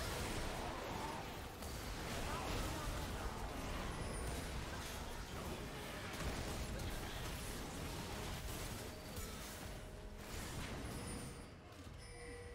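Magic blasts crackle and boom in a fast, chaotic fight.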